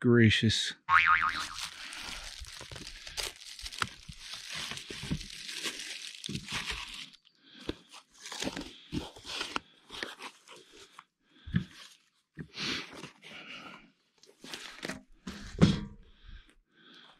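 Cardboard crinkles and rustles as a package is unwrapped.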